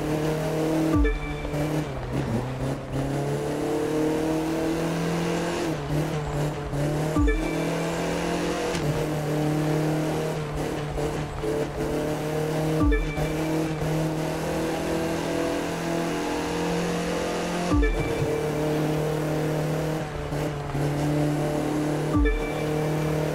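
A racing car engine briefly drops in pitch with each gear change.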